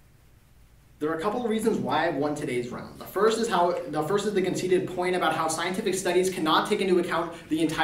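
A young man speaks clearly and steadily, close by in a room.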